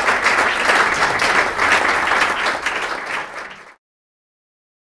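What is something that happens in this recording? An audience applauds in a room and the clapping fades away.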